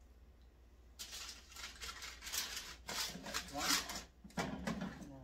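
A metal tray slides and rattles as it is pulled from an oven.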